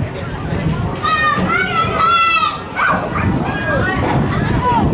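Young women shout and cheer outdoors on an open field.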